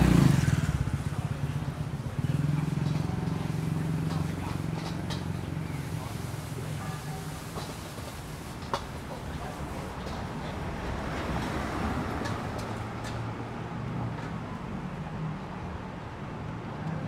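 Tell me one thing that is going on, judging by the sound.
A busy street hums outdoors with distant traffic.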